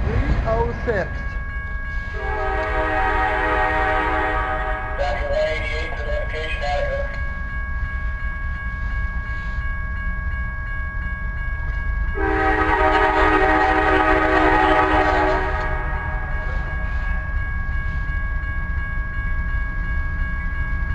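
A railroad crossing bell rings steadily.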